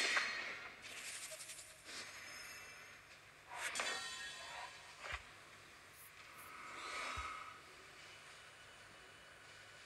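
Game sound effects chime as cards are drawn and played.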